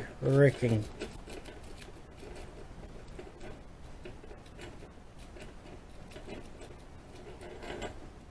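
Small metal parts click and scrape as hands fiddle with a lock.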